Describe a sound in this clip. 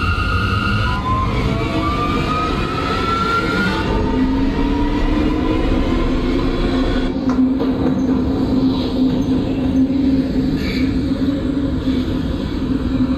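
A train motor whines, rising in pitch as the train speeds up.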